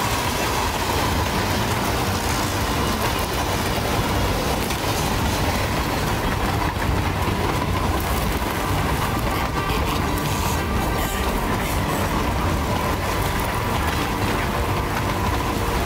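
Strong wind howls steadily outdoors.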